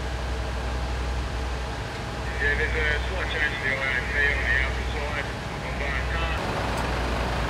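A water jet hisses onto a burning building.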